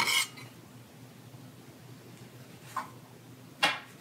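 A knife thuds through dough onto a counter.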